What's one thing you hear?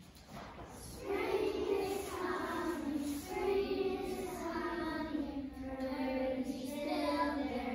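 A group of young children sing together in a large echoing hall.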